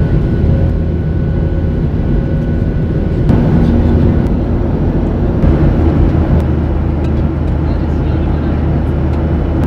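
A jet engine roars steadily from just outside the cabin.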